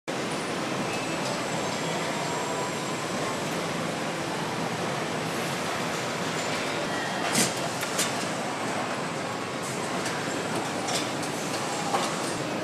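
Machinery hums steadily through a large factory hall.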